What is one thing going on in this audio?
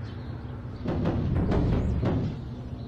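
Garbage tips out of a truck with a loud rumble.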